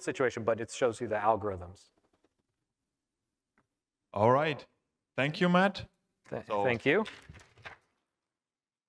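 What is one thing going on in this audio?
A middle-aged man speaks calmly into a microphone, in pauses.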